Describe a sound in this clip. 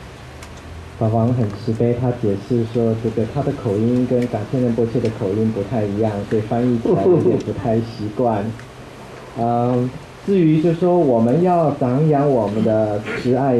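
An elderly man speaks calmly into a microphone, heard through loudspeakers in a room.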